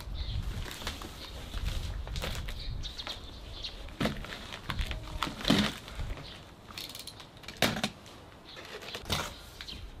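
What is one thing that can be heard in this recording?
A cardboard box scrapes and thumps on a wooden deck.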